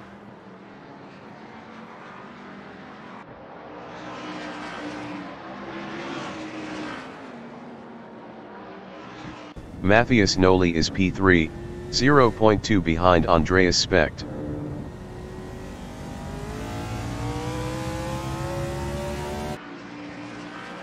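Race car engines drone steadily and rev up.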